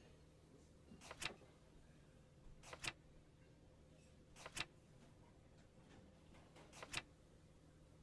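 A book's paper pages flip with quick swishes.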